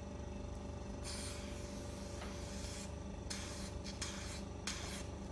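A handheld skin care wand hisses in short bursts against the skin.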